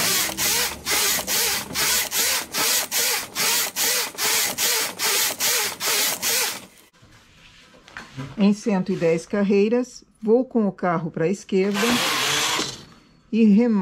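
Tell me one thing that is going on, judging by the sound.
A knitting machine carriage slides across the needle bed with a rapid, rhythmic clatter.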